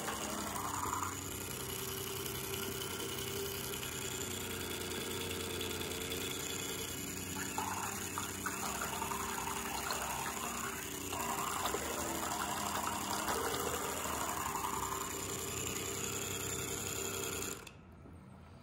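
A small electric toy motor buzzes steadily.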